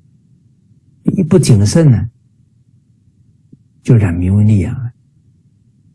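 A middle-aged man speaks calmly into a microphone over an online call.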